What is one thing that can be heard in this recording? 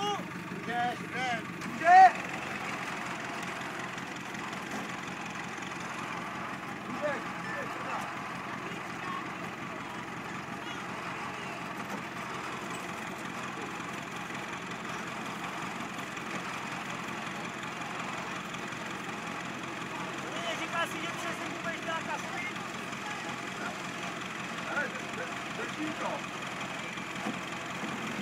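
An off-road vehicle engine rumbles steadily.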